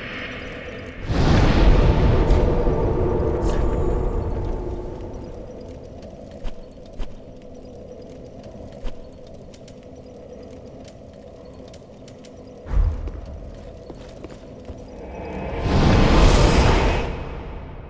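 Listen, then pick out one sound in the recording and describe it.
A deep whooshing rush swells up and fades.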